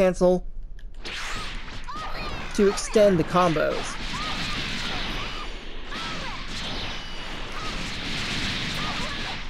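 Energy blasts whoosh and crackle loudly.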